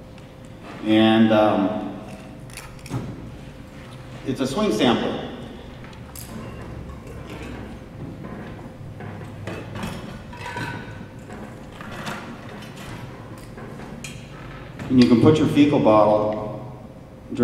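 A man speaks through a microphone and loudspeakers in a large hall.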